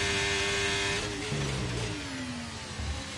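A racing car engine drops in pitch as the gears shift down.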